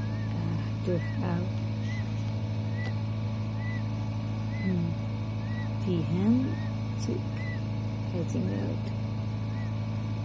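A chick peeps softly and steadily from inside its egg.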